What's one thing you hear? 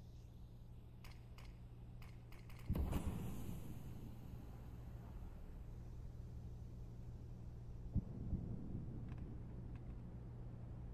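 Footsteps tap on a hard stone floor.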